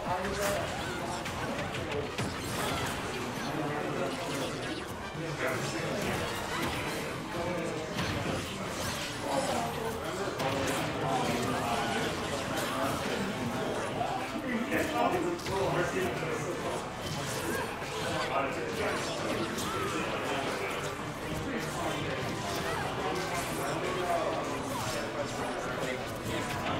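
Video game fighters trade rapid punches, blasts and crashing hits.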